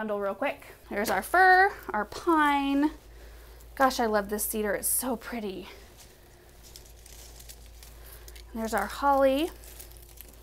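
Pine branches rustle as they are handled.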